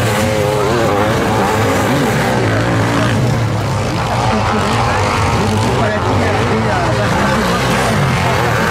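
Sidecar motorcycle engines roar and rev loudly as they race past outdoors.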